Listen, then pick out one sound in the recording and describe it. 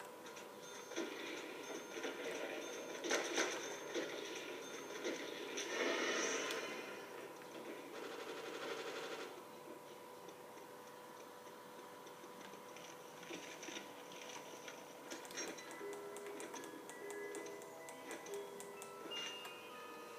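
Gunfire from a video game plays through a television speaker.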